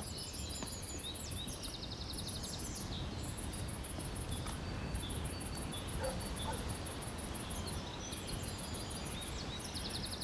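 Footsteps walk along a path outdoors.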